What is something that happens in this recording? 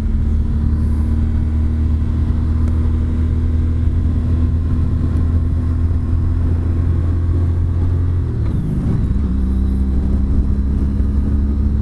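Wind rushes past a close microphone.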